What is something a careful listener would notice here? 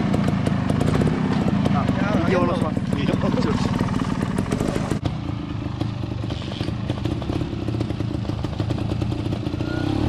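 A motorcycle engine idles with a fast, rough putter close by.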